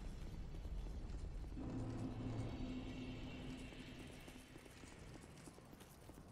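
Armored footsteps thud quickly over stone.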